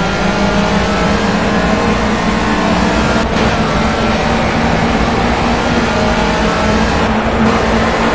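A racing car engine roars loudly at high revs.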